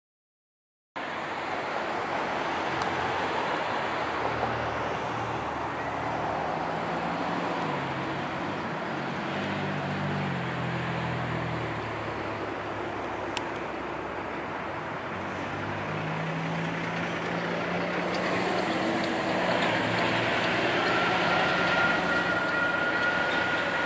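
Steel wheels squeal and clatter on the rails.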